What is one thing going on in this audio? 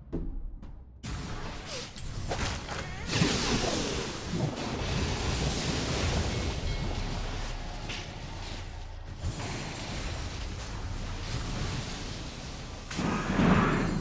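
Game battle sounds clash and burst with magic effects.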